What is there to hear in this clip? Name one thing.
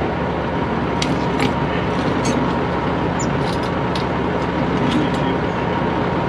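Metal tools clink and tap against a jack.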